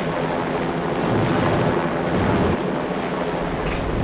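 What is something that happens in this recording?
A flamethrower roars in a burst.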